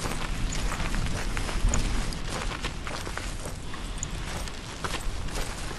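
Footsteps crunch on rough stone.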